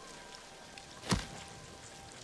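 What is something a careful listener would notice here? A sword slashes with a sharp swish.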